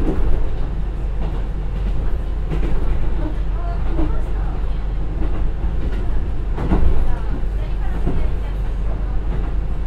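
A diesel railcar engine rumbles steadily as the train runs along the tracks.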